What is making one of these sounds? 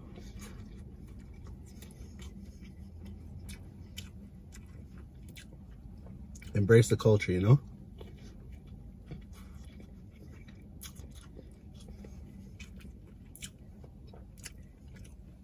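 A man chews food with his mouth close by.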